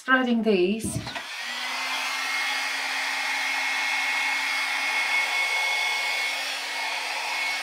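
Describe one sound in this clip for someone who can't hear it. A hair dryer blows with a steady whir.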